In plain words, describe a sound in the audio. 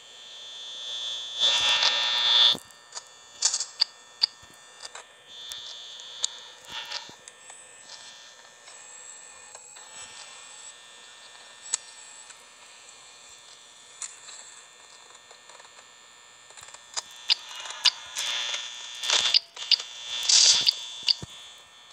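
Electronic static hisses steadily.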